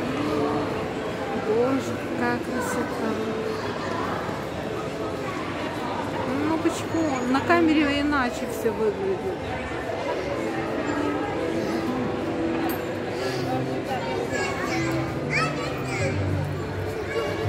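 A crowd of adults and children chatters in a large echoing hall.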